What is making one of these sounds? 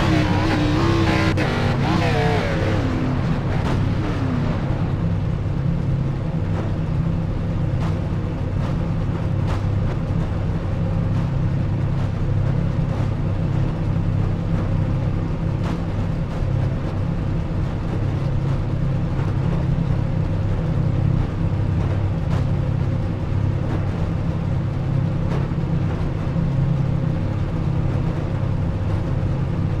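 A race car engine idles with a steady, low rumble.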